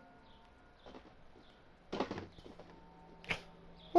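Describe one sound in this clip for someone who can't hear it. A cardboard box drops onto a wooden floor with a soft thud.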